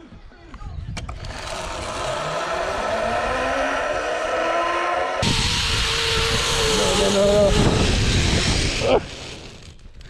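A zipline trolley whirs loudly along a cable.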